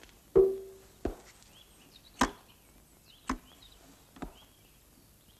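A case's latches click open and its lid thumps.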